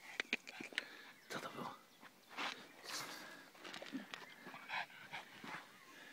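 A pug scrabbles and paws in loose dirt.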